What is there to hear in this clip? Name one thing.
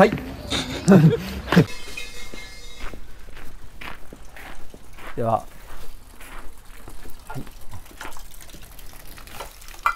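Footsteps walk on pavement outdoors.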